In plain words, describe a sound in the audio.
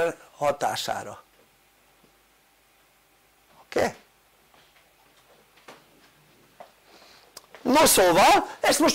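An elderly man speaks calmly, pausing between phrases.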